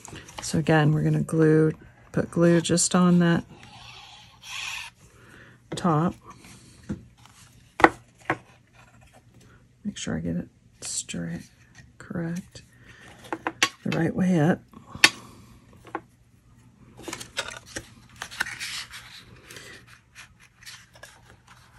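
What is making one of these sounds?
Card stock rustles and taps as hands fold and handle it.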